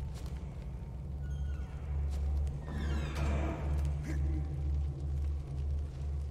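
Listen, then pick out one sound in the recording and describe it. Footsteps tap on a tiled floor.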